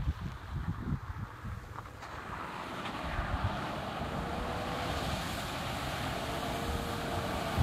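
A car engine hums as it approaches.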